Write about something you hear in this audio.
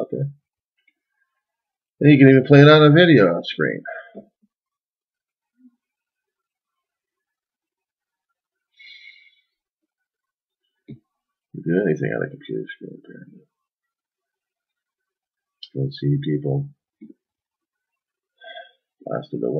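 A middle-aged man speaks calmly and close by, with pauses between phrases.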